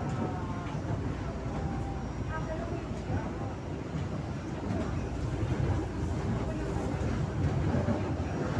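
A light rail train rumbles along the track, heard from inside the car.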